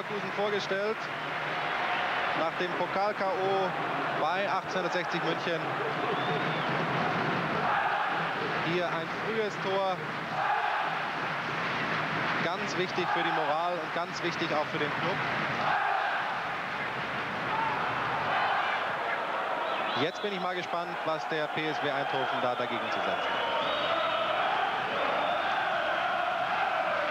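A large crowd murmurs and chants in a stadium.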